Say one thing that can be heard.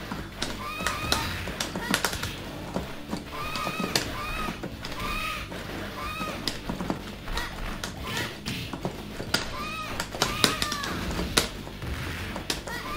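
Upbeat game music plays throughout.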